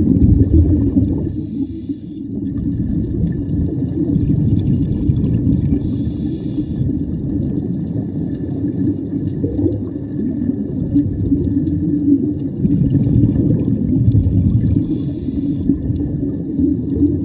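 Air bubbles rumble and gurgle steadily underwater.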